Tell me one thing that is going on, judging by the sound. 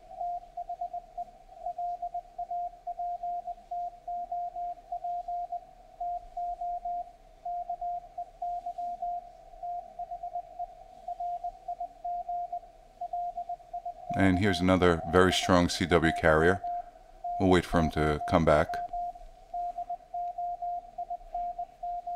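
Morse code beeps in quick bursts from a radio receiver.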